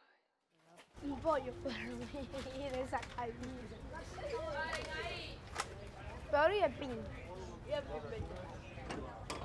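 Young boys talk and call out nearby outdoors.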